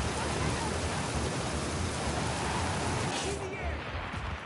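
Wind rushes loudly past a figure flying through the air.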